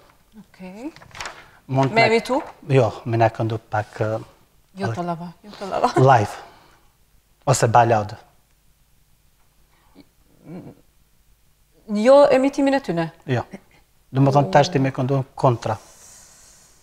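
A young woman talks calmly, close to a microphone.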